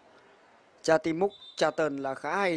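A referee blows a short whistle blast.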